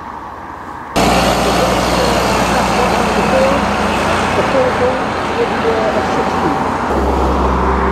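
A heavy truck engine rumbles as it drives past.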